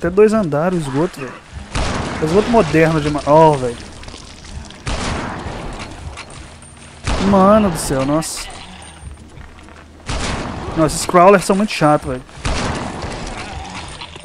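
A rifle fires several sharp shots.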